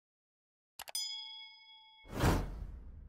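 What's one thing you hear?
A small bell chimes and rings out.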